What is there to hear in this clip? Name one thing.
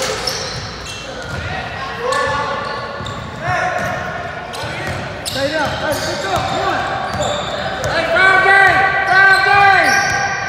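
Players shout to each other across an echoing gym.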